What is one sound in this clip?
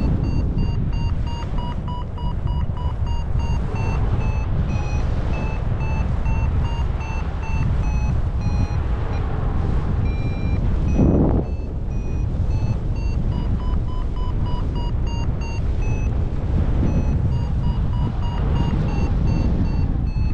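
A flight instrument beeps rapidly, its pitch rising and falling.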